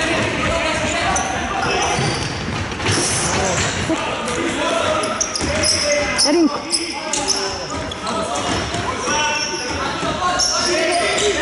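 Sports shoes squeak sharply on a hard court in a large echoing hall.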